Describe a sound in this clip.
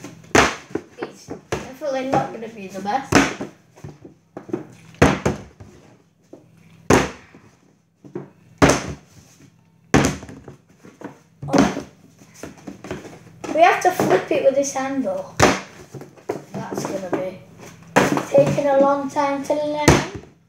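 A plastic milk jug thumps down on a table again and again.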